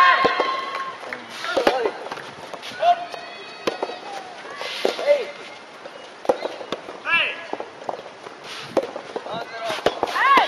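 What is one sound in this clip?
A tennis racket strikes a ball with a sharp pop.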